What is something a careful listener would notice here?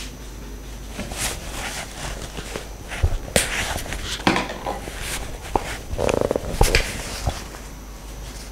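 A woman speaks calmly, as if teaching.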